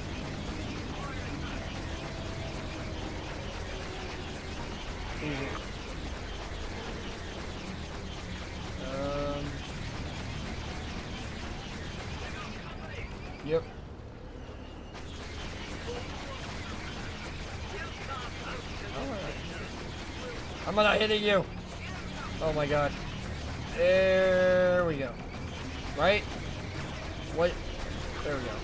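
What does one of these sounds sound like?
Spaceship engines hum steadily.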